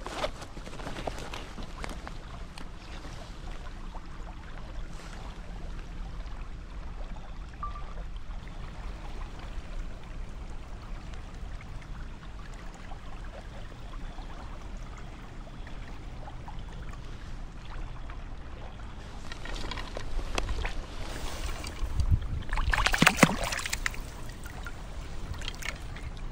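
A stream flows and ripples nearby.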